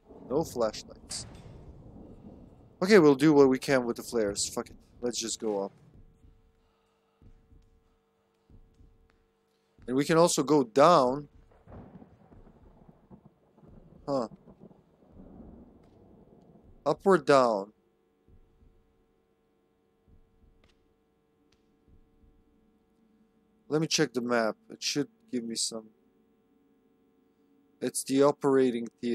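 A young man talks calmly and close to a microphone, in short bursts with pauses.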